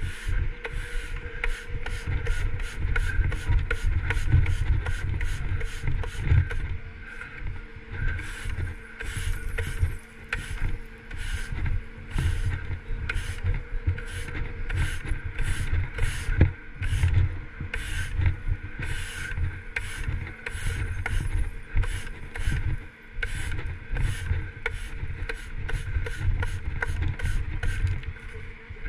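A sweeper bar scrapes and rattles across gritty asphalt.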